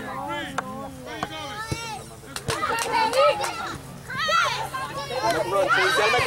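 A soccer ball is kicked with a dull thump.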